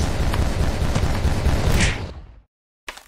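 Gunshots pop in a quick burst.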